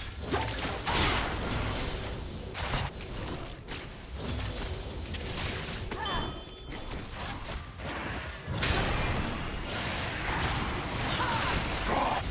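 Game spell effects crackle and clash rapidly throughout a fight.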